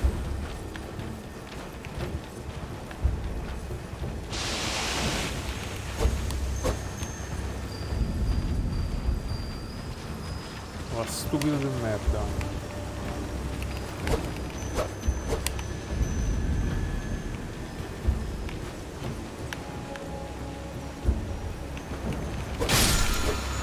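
Hooves thud as a horse gallops.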